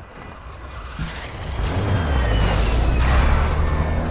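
A large vehicle engine starts and revs loudly.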